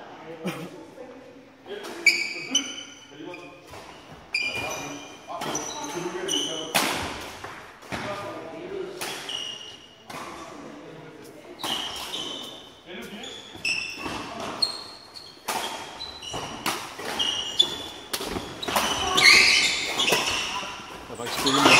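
Badminton rackets smack shuttlecocks in a large echoing hall.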